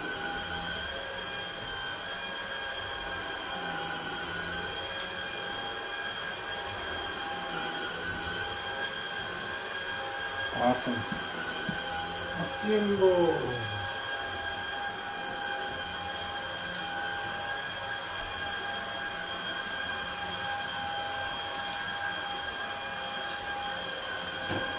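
A vacuum cleaner hums steadily indoors.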